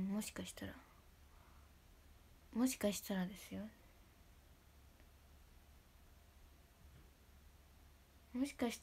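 A young woman speaks softly in short bursts, close to a microphone.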